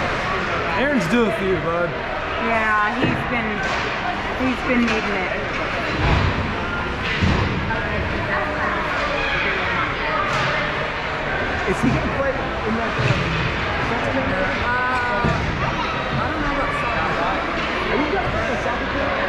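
Young children shout and call out across a large echoing rink.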